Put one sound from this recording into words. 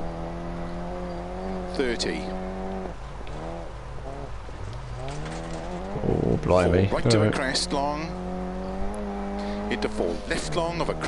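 A racing car engine drones and revs up and down.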